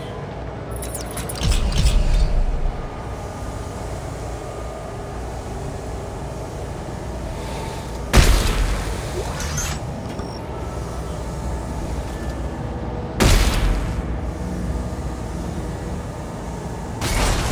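A large fan hums steadily in the background.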